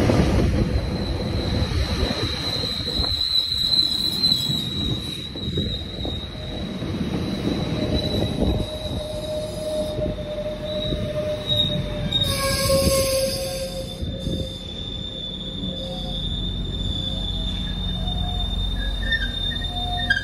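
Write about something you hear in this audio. Train wheels squeal against the track with a steady high whine.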